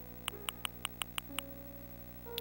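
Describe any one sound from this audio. Quick soft clicks tick as a menu cursor moves down a list.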